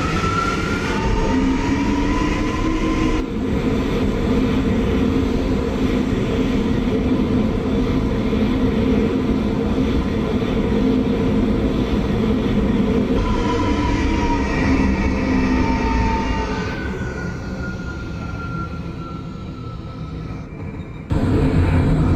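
A subway train rumbles and whines as it pulls out and fades away.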